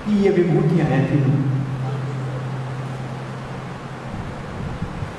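An elderly man sings a long held note into a microphone.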